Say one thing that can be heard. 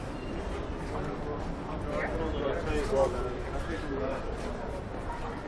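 Men talk casually as they walk past nearby.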